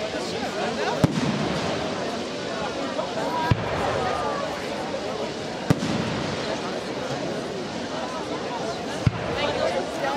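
Fireworks burst with sharp, booming bangs every few seconds.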